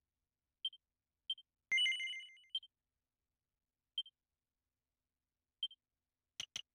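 Short electronic menu blips sound one after another.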